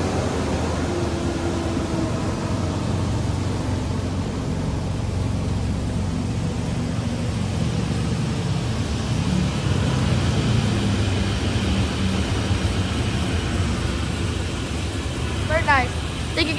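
Large air blowers roar steadily.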